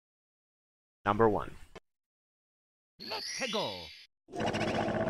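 Short game sound effects chime as a level is picked.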